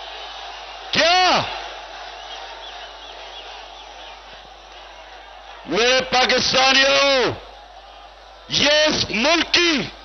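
A man speaks loudly and forcefully into a microphone over loudspeakers.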